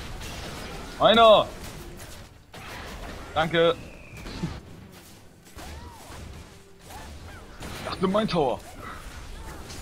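Magic blasts and hits crackle and burst in a fast fight.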